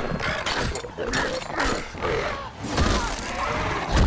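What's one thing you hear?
Metal weapons clash with heavy blows.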